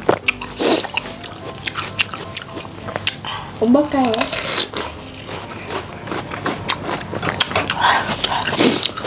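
Two young women crunch and slurp juicy watermelon close to a microphone.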